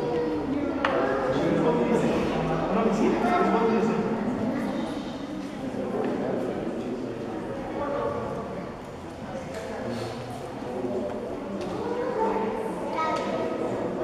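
A group of young girls sing together in a hall with some echo.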